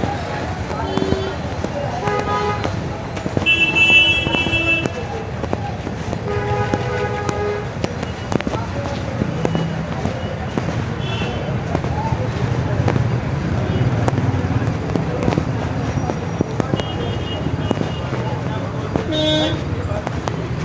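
Vehicle horns honk in short blasts now and then.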